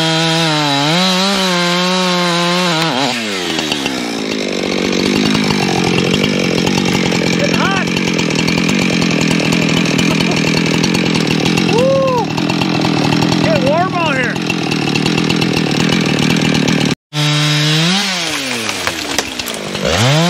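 A chainsaw engine revs loudly, then runs at a steady idle.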